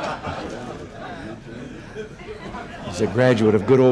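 An elderly man laughs into a microphone.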